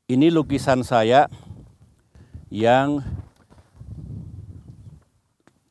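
An elderly man speaks with animation outdoors, close by.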